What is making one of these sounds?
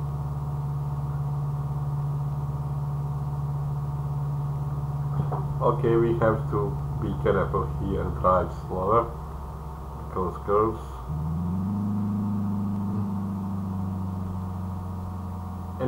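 A car engine hums steadily, rising in pitch as the car speeds up.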